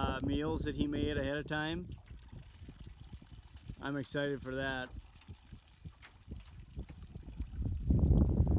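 Water splashes gently as a bottle is dipped and filled.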